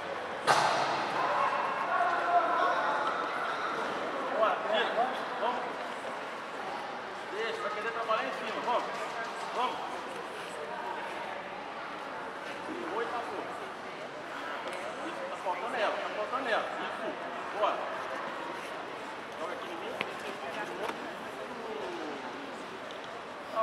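A crowd of men shouts and cheers in a large echoing room.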